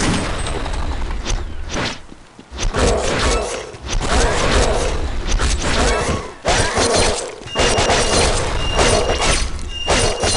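Blades slash and strike over and over.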